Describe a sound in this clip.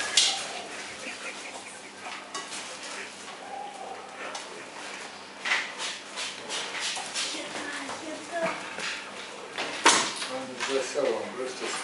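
A bear cub rummages through plastic crates of fruit.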